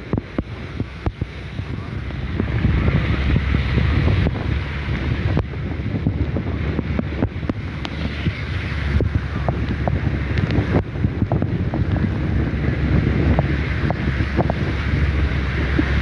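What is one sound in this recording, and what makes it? Strong wind roars and buffets loudly.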